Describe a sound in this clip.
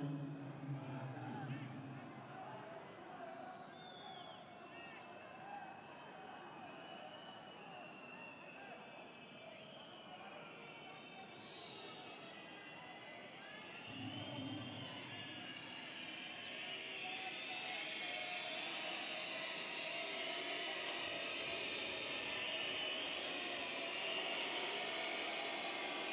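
A large stadium crowd chants and cheers steadily, growing louder toward the end.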